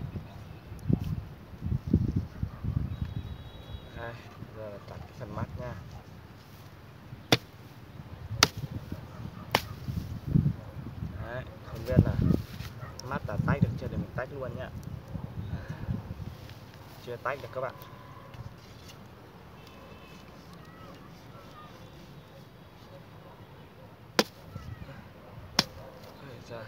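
A blade chops into bamboo with sharp knocks.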